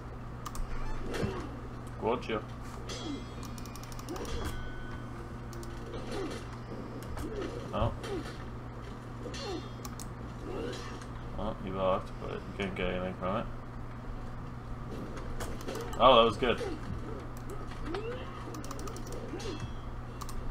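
Swords clash and clang repeatedly.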